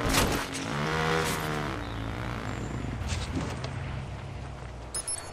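A motorbike engine hums steadily as the bike rides along.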